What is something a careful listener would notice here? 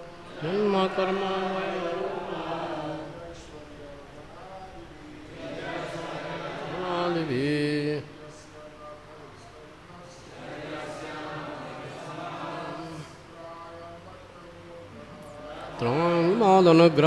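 An older man chants in a steady, drawn-out voice through a microphone.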